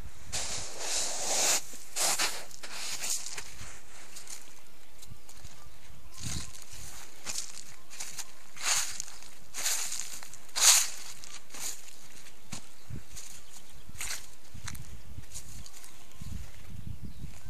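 Footsteps crunch on snow and dry leaves.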